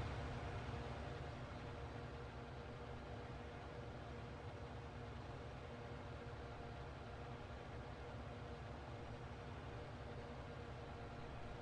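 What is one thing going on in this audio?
A mower whirs as it cuts grass.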